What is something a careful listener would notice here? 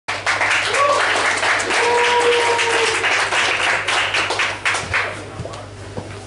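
A crowd cheers and whistles in a large echoing room.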